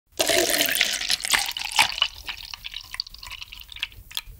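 Milk pours from a carton into a glass, splashing close to a microphone.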